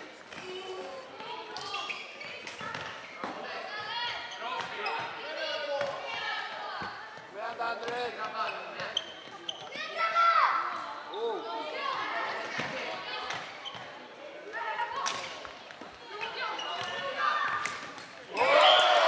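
Boys shout and call out to each other in a large echoing hall.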